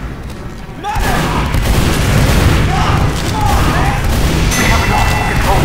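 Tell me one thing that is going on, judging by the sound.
A shotgun fires in loud bursts.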